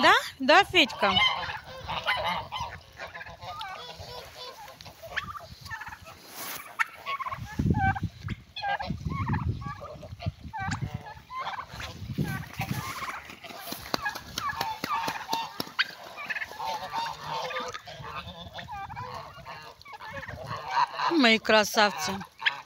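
Geese honk and cackle.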